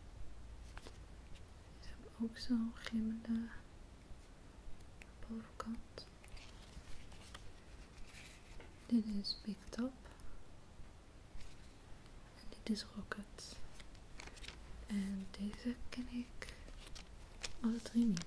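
Stiff plastic cards rustle and click as they are handled.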